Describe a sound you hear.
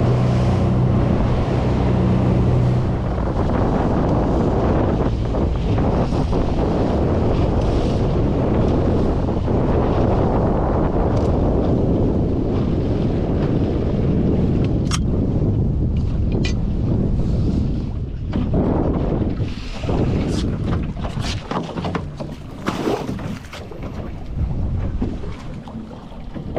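Strong wind rumbles loudly outdoors.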